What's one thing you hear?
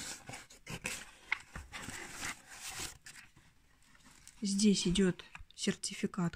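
A cardboard box scrapes and rubs as it is moved.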